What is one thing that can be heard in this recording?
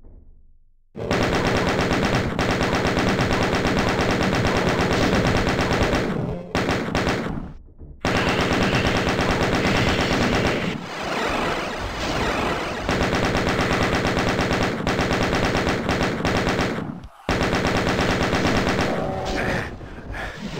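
A rapid-fire gun blasts in long, fast bursts.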